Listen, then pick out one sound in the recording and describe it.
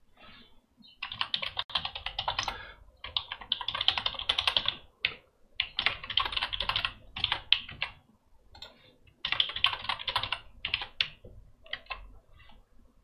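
Keys on a keyboard click in quick bursts of typing.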